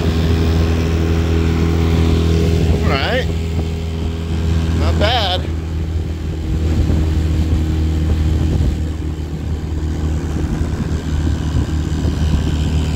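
Water rushes and splashes behind a fast boat.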